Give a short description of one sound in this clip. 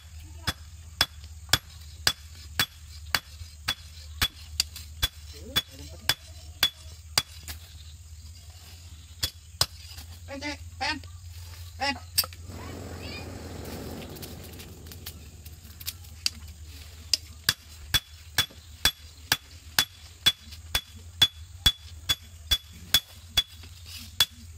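A hammer strikes hot metal on an anvil in quick, ringing blows.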